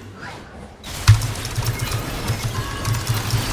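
Game fight effects clash and crackle loudly.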